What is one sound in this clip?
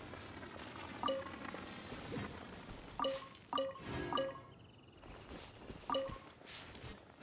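A bright game chime rings several times.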